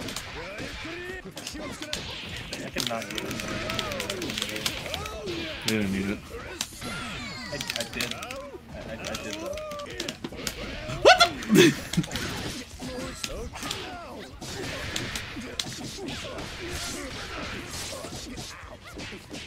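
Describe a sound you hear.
Punches and kicks land with sharp smacks in quick succession.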